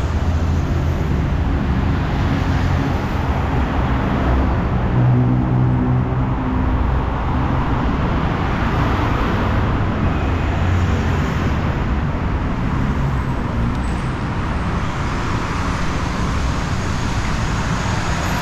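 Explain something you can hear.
Traffic rumbles steadily along a busy road.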